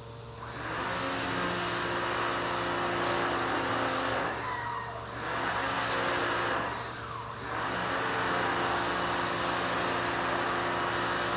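Air hisses loudly from a pipe, dipping briefly twice.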